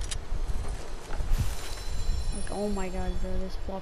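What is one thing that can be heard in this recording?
A treasure chest creaks open with a chiming sound.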